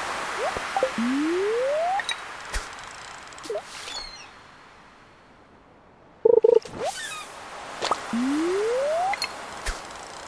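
A fishing line whirs out with a rising tone as it is cast into water.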